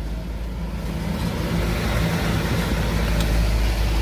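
A passing truck roars close by.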